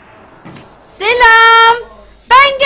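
A young woman shrieks loudly close to a microphone.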